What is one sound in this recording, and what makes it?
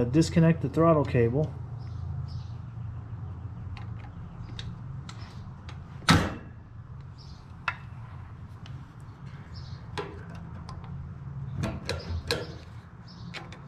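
Metal parts click and tap as a tool works an engine's throttle linkage.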